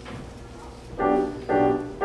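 An orchestra begins to play with strong, loud chords.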